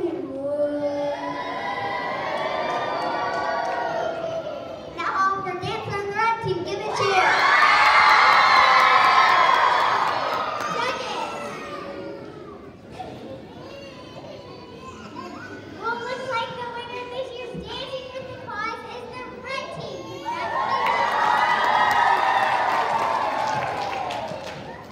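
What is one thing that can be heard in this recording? A large choir of children sings together in an echoing hall, swelling loud and then softening.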